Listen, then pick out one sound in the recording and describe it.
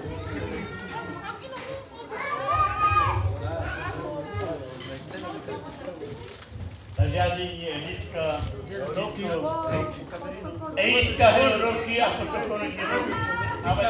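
A man speaks animatedly through a microphone over a loudspeaker in a large echoing hall.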